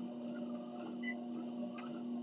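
A treadmill console beeps once.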